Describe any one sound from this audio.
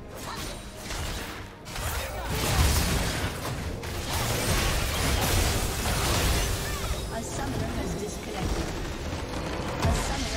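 Spell blasts and weapon hits crash in a fast, busy game fight.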